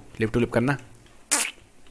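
A cartoon villager character grunts in a nasal, murmuring voice.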